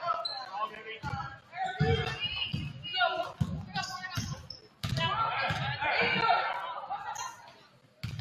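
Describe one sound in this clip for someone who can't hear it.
A basketball thumps on a wooden floor.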